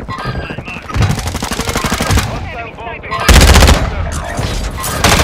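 Gunshots crack loudly in rapid bursts.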